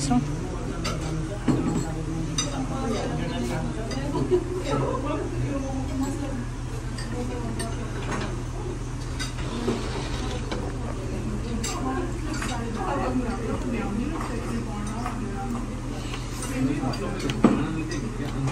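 Cutlery clinks against plates and a bowl.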